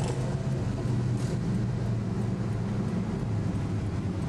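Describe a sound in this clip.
Traffic passes on a busy road.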